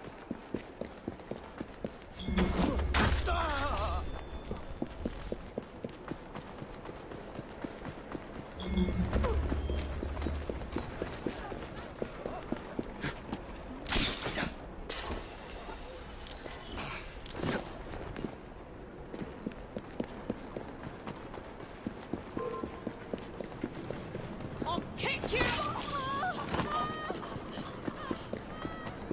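Footsteps run quickly on cobblestones.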